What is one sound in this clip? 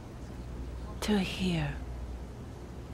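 A woman speaks softly and emotionally nearby.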